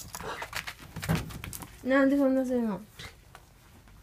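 A dog's paws rustle and scrape a blanket.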